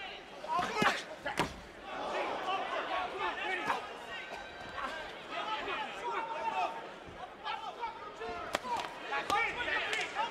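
Gloved punches land with sharp thuds.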